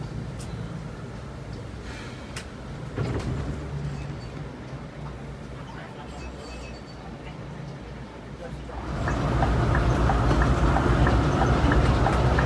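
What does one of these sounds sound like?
A bus engine hums low and steady from inside the cab.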